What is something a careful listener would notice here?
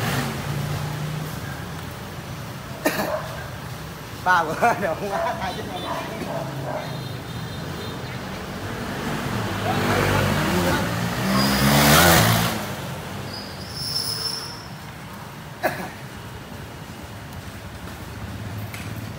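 Motorbike engines hum along a street.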